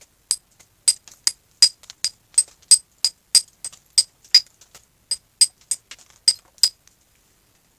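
A mallet taps a carving chisel into wood in quick, sharp knocks.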